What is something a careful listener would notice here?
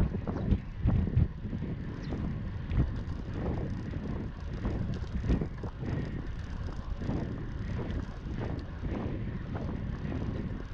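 Wind rushes and buffets loudly past a moving bicycle.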